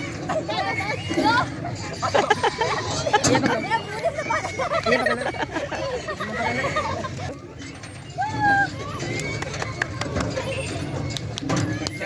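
Young men talk and laugh excitedly nearby outdoors.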